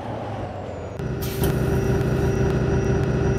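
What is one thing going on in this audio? A bus engine idles with a louder drone while the bus stands at a stop.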